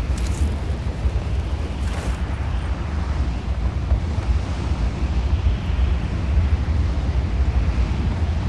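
Wind rushes loudly past a falling wingsuit flyer.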